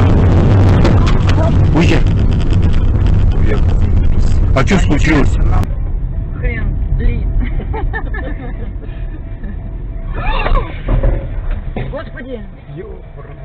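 A car crashes off the road with a loud bang.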